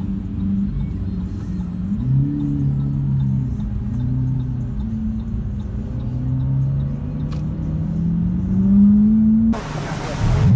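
A sports car engine hums and revs, heard from inside the car.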